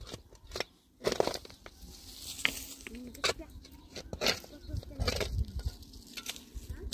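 A shovel scrapes and digs into stony soil.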